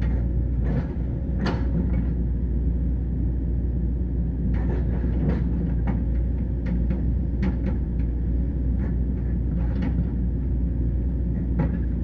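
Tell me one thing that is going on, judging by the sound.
A large diesel engine rumbles steadily nearby.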